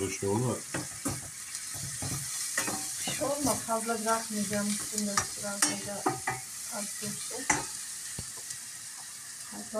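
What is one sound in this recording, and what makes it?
A spoon scrapes and clatters against a frying pan.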